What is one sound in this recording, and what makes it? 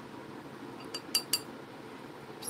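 A paintbrush clicks and taps against a ceramic palette.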